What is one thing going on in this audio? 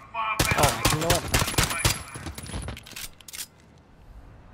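Pistol shots fire in a rapid burst.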